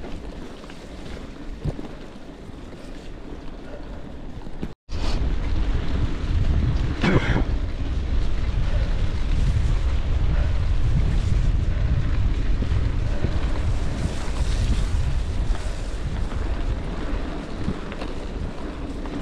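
Bicycle tyres roll and crunch over a bumpy dirt track.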